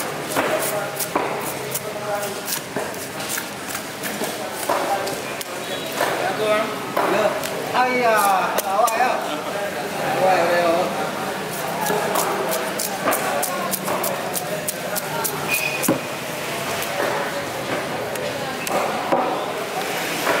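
A cleaver chops and scrapes against fish on a wooden block.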